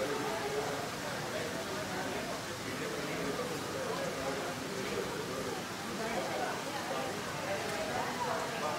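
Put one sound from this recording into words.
A crowd of men and women chatters all around, close by.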